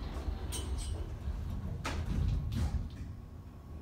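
Elevator doors slide shut with a soft thud.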